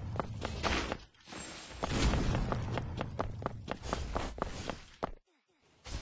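Quick light footsteps patter on grass.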